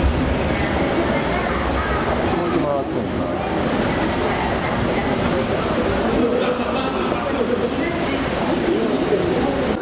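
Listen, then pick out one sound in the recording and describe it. Swirling sea water churns and rushes below.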